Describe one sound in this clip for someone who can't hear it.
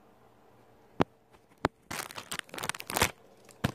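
Fingers knock and rub against a phone's microphone.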